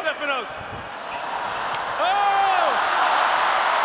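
A crowd cheers and applauds in a large open arena.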